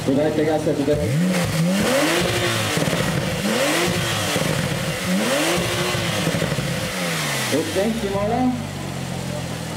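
A sports car engine revs hard again and again, close by.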